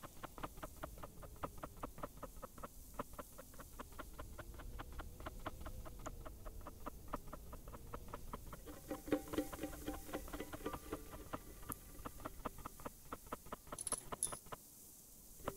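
Footsteps crunch steadily across sand.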